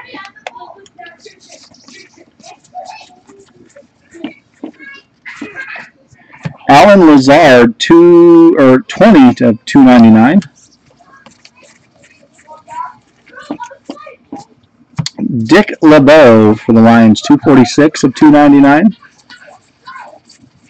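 Trading cards rustle and slide as a hand shuffles through a stack.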